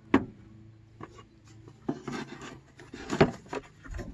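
A plastic box knocks and rattles as it is lifted out.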